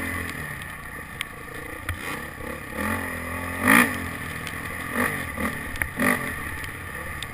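A motorbike engine runs and revs.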